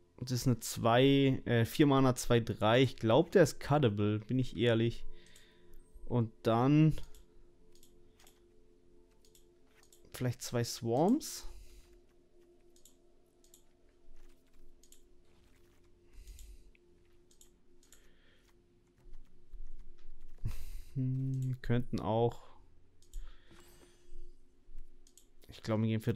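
A young man talks casually and close into a microphone, with pauses.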